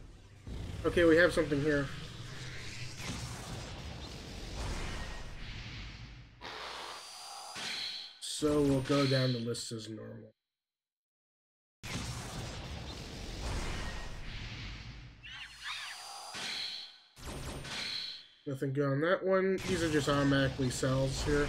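Magical game effects whoosh and shimmer.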